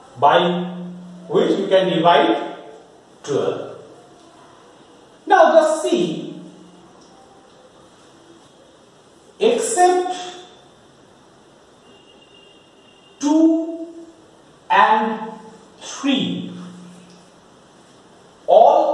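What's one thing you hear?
A man speaks slowly and clearly in short phrases, like a teacher explaining.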